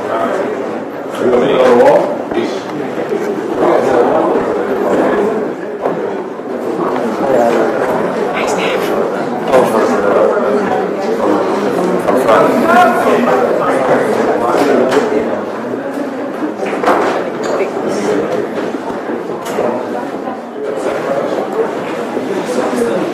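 A crowd of men and women chatters all around indoors.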